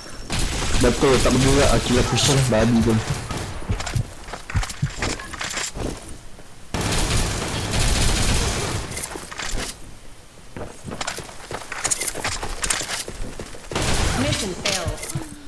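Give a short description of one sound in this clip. Guns fire in short bursts.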